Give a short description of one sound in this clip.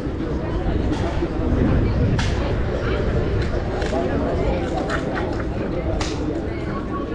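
Padel balls pop off rackets on nearby courts.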